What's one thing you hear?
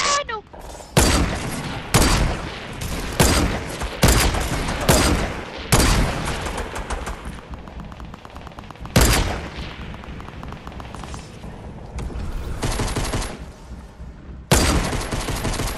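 Rifle shots crack loudly, one after another, with a ringing echo.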